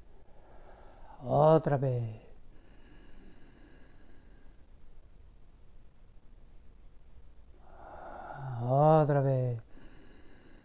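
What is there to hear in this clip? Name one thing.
A man hums a long, low tone.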